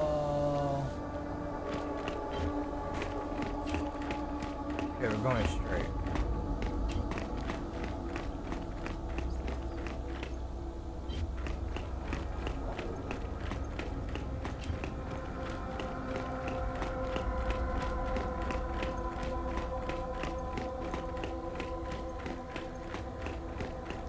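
Heavy boots thud in a steady rhythm on a hard floor.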